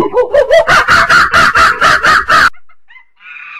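A chimpanzee screams loudly and shrilly.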